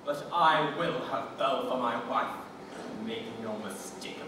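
A man speaks loudly and theatrically on a stage.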